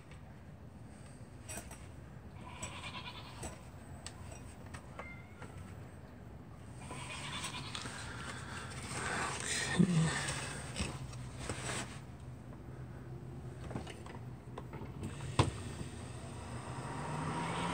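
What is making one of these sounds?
Wires and small plastic parts rustle and click as they are handled.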